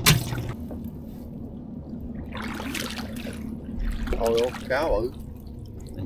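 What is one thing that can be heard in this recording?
A fishing net splashes as it is fed into river water.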